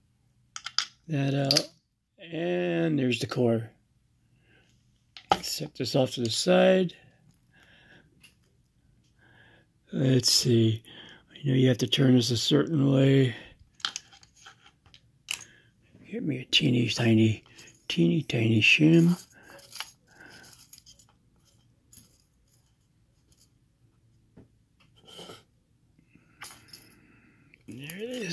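Small metal parts click softly against a padlock.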